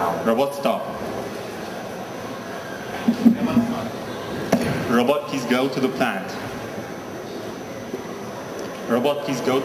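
A young man speaks through a handheld microphone in a large echoing hall.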